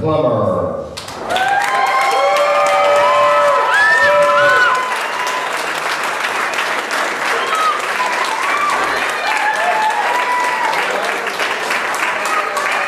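A crowd of guests applauds and cheers.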